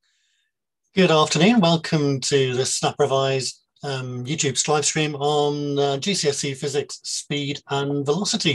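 A middle-aged man speaks calmly and clearly through an online call microphone.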